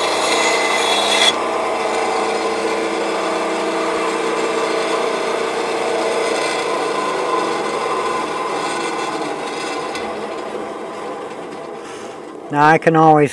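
A band saw runs with a steady whine and slowly winds down.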